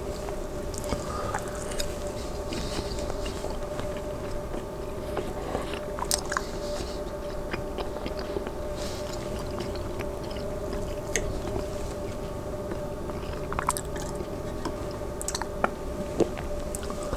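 A man chews food close to a clip-on microphone.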